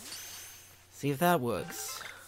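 A man speaks with animation close to a microphone.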